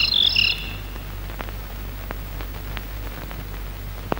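A clock ticks softly.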